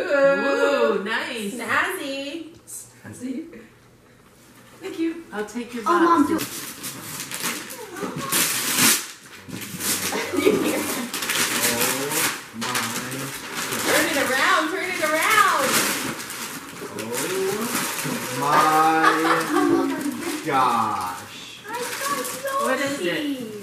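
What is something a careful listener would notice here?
Family members talk and exclaim with excitement.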